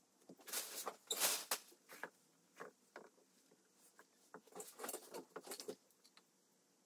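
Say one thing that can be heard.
Clay pieces knock and clatter on a hard surface.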